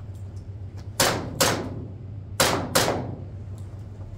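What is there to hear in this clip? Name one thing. Gunshots crack in quick pairs, ringing off the walls of an echoing room.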